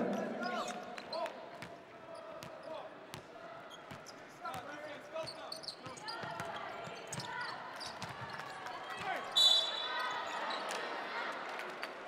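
Basketball shoes squeak on a hardwood court.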